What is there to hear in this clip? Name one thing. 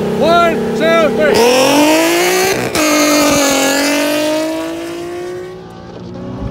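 A nearby car engine revs loudly and roars off.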